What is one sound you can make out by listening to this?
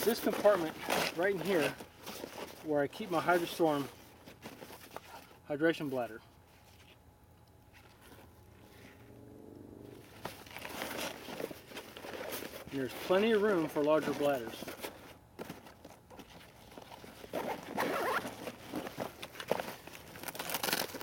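Hands rummage in a nylon backpack, its fabric rustling.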